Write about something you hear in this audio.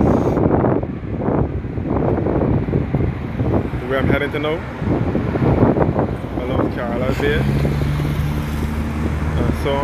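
Car engines hum as cars drive past.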